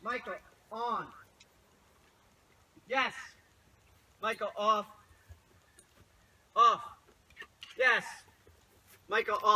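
A man calls out to a dog in short, high, cheerful bursts close by.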